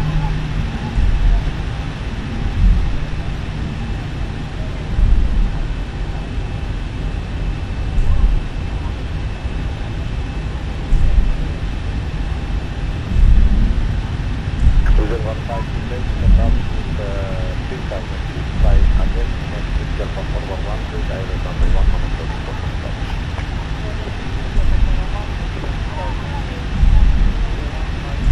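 Aircraft wheels thump over joints in the pavement at a steady pace.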